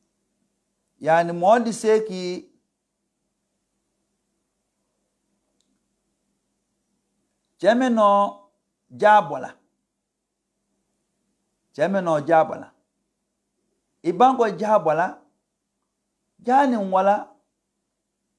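An elderly man speaks slowly and calmly into a microphone, in short phrases with long pauses.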